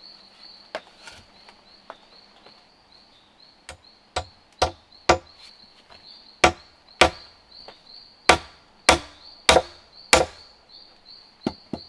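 A machete chops into a wooden log with sharp, repeated knocks.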